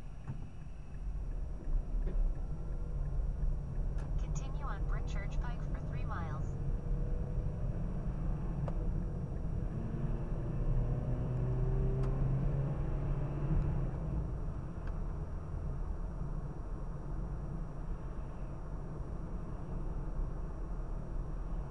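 Tyres roll on a road with a low rumble.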